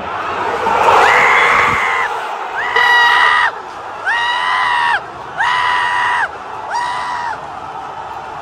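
A large crowd chants loudly in unison in a big open stadium.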